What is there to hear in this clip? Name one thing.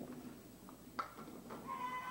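Bowling pins clatter as a ball strikes them.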